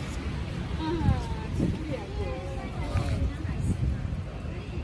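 A young girl talks softly nearby.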